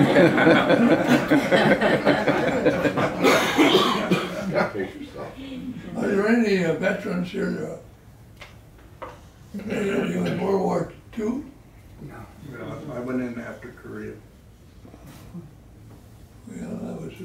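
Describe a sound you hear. An elderly man talks calmly and close by, pausing between phrases.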